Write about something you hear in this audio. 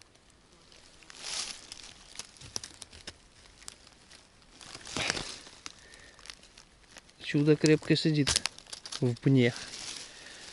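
Dry leaves rustle and crackle as a hand reaches into them.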